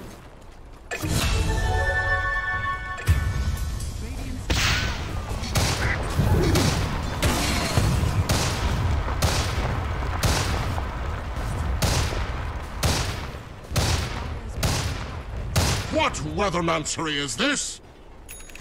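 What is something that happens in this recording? Video game battle sounds crash and whoosh with rapid impacts and spell blasts.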